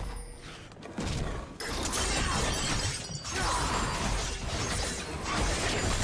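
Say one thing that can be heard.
Game characters clash with spell effects and impact sounds.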